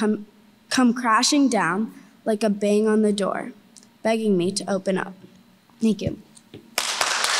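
A young girl reads aloud through a microphone.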